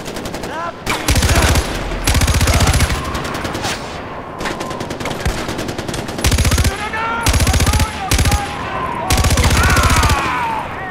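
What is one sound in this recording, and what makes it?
An automatic rifle fires in bursts.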